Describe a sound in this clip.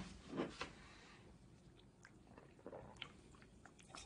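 A man gulps a drink from a can.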